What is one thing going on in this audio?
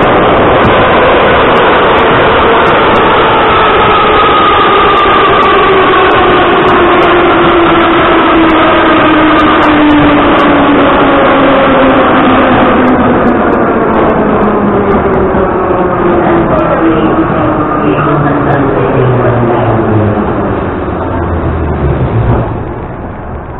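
A subway train roars loudly through a tunnel, its pitch falling as it slows to a stop.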